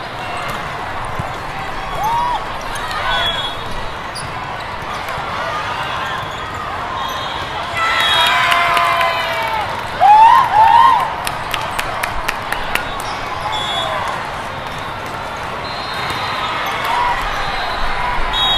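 A volleyball is struck with loud smacks.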